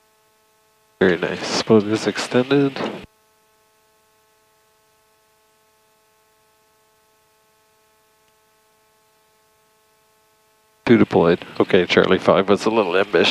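A man speaks calmly over a headset radio.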